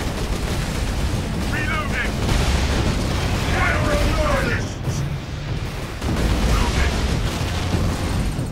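Laser gunfire crackles and hums in rapid bursts.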